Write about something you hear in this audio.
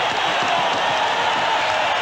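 A young man shouts in triumph.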